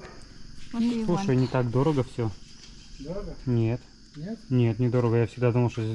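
Menu pages rustle as they turn.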